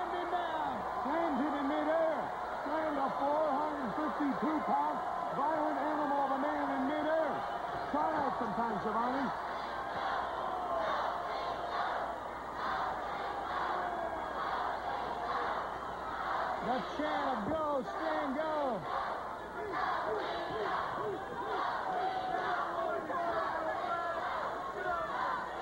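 A large crowd cheers and shouts in a big echoing hall.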